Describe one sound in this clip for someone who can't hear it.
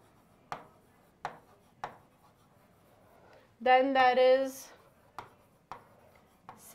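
A marker taps against a board.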